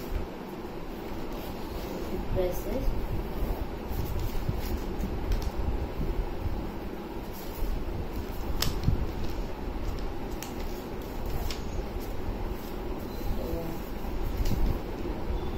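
Paper rustles and crinkles as it is folded and creased.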